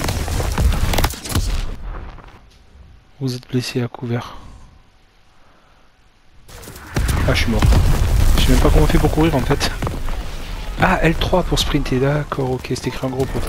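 Gunfire and explosions rumble from a battle game.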